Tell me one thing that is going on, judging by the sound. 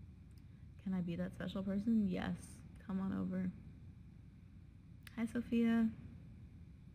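A young woman talks casually and close to the microphone.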